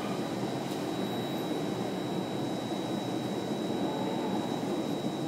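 A train rumbles steadily along the tracks through a tunnel.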